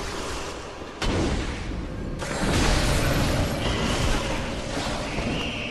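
A blade slashes and strikes with heavy impacts.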